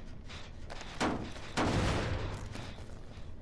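A machine clanks and rattles loudly as it is struck.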